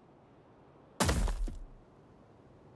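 A building drops into place with a soft thud and chime.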